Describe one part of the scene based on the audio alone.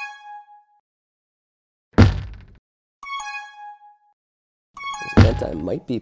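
Electronic game tones chime in short bursts.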